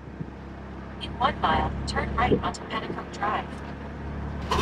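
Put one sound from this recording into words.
A woman speaks close by inside the car.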